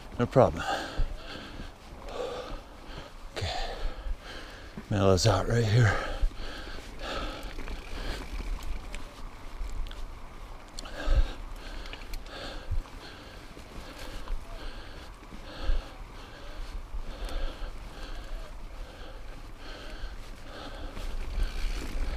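Bicycle tyres crunch and rattle over a rocky dirt trail.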